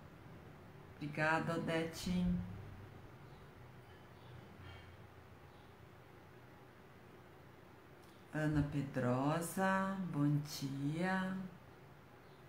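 A middle-aged woman speaks briefly and calmly, close by.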